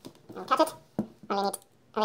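A wire stripper clicks as it squeezes a wire.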